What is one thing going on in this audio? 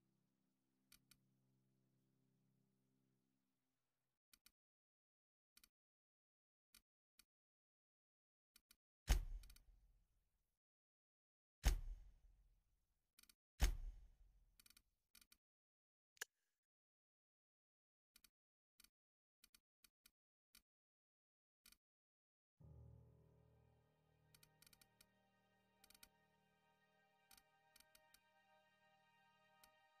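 Soft interface clicks tick as menu items are selected.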